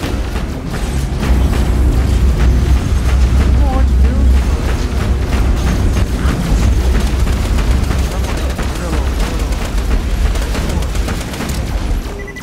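Gunfire rattles in rapid bursts with loud booming blasts.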